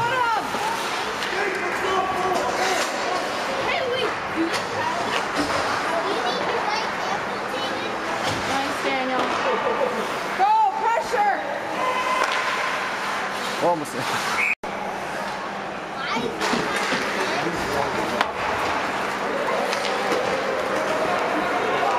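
A crowd of spectators chatters nearby in a large echoing rink.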